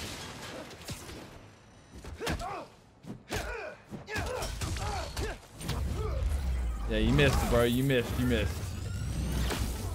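Punches and kicks thud in quick blows.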